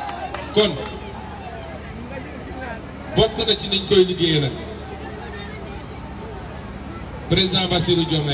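A man speaks forcefully into a microphone over a loudspeaker, outdoors.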